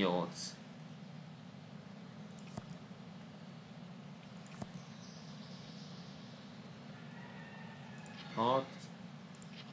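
A man speaks briefly into a nearby microphone.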